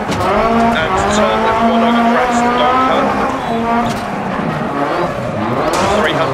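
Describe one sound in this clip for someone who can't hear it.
A rally car engine roars, its pitch rising and dropping with gear changes.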